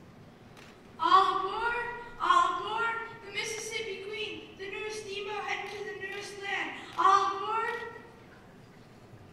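A man sings loudly into a microphone in a large hall.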